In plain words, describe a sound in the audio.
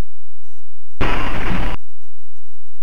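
Glass shatters.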